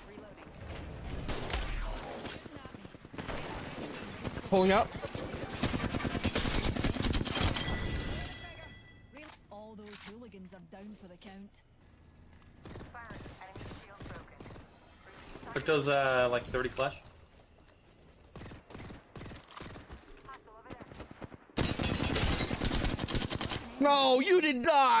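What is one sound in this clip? Gunfire bursts out in rapid volleys.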